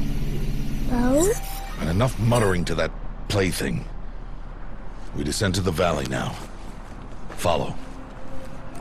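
A man speaks in a deep, forceful voice.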